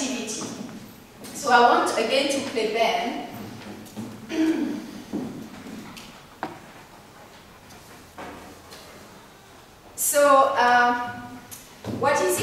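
A woman speaks into a microphone, reading out calmly.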